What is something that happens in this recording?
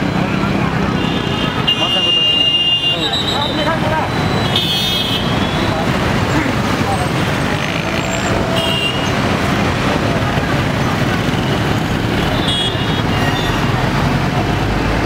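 Motorbikes and cars pass by on a busy street.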